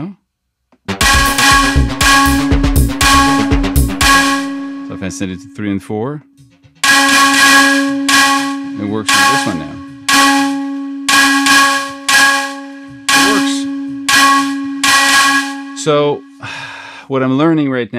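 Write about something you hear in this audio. A synthesizer plays short, repeating chords over a steady held note.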